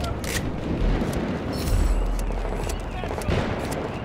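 Fires crackle and roar nearby.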